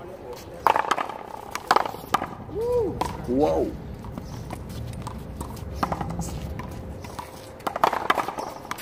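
A rubber ball bounces on pavement.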